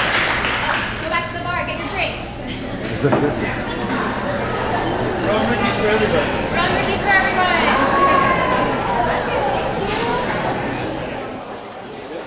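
A woman talks into a microphone.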